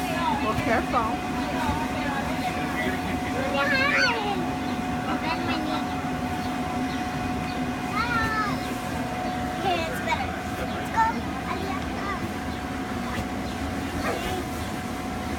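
Young girls talk and squeal nearby.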